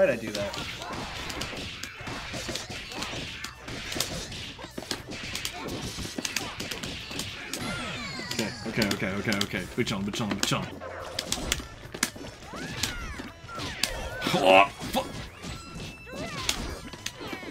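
Punches and kicks land with sharp smacks in quick bursts.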